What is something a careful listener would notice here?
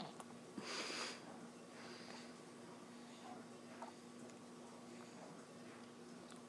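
An infant smacks lips and sucks while chewing food close by.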